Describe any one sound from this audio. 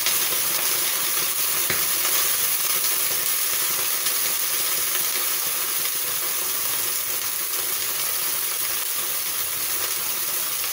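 Vegetables sizzle steadily in a hot frying pan.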